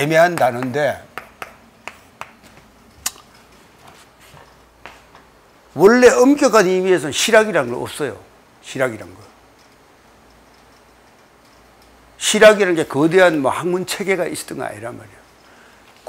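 An elderly man speaks calmly and clearly into a microphone, in short bursts with pauses.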